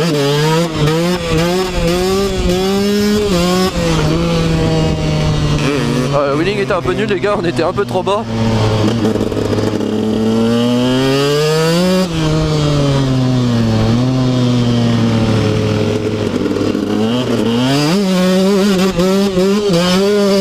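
A dirt bike engine revs loudly up and down close by, shifting pitch as it speeds up and slows.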